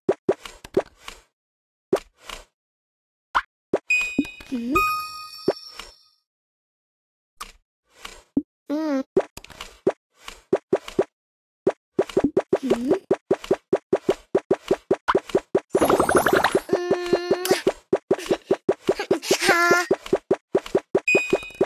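Quick clicks and chimes from a mobile game sound again and again.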